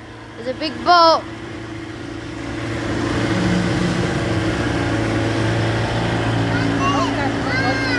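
A motorboat engine drones nearby, growing louder as it passes.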